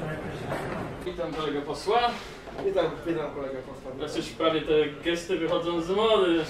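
A second man answers in a lively voice, close by.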